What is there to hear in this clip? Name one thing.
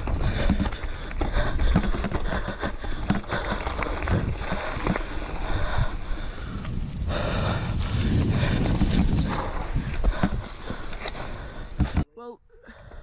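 Dry leaves crackle under bicycle tyres.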